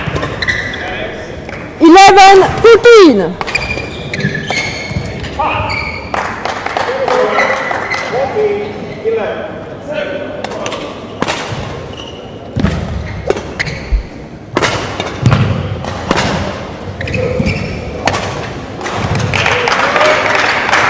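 Shuttlecocks are struck sharply by rackets in a large echoing hall.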